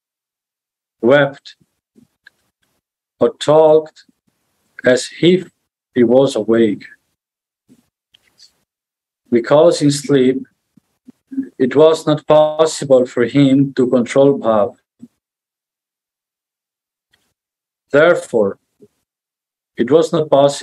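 A man reads out calmly in bursts with pauses, heard through an online call microphone.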